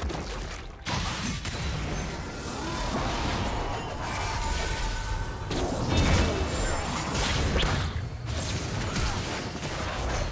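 Video game spells whoosh and blast during a fight.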